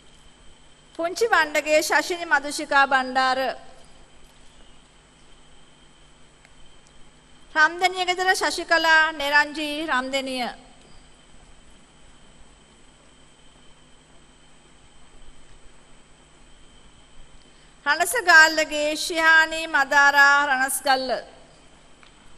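A woman reads out names through a loudspeaker in a large hall.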